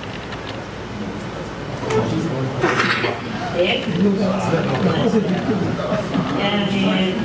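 An elderly woman speaks steadily into a microphone, heard over loudspeakers.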